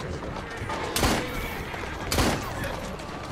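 Pistol shots crack loudly, twice.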